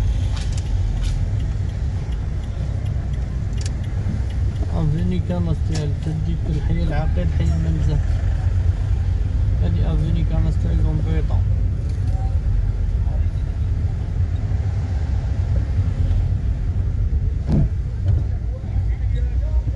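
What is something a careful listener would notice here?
Tyres roll over a city street.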